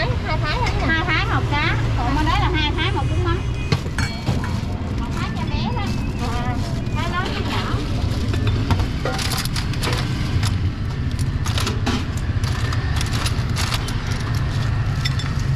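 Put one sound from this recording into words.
Ceramic bowls and utensils clink and clatter.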